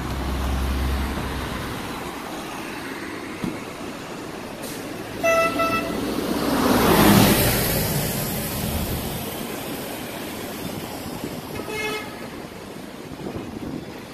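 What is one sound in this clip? Traffic rumbles along a city street outdoors.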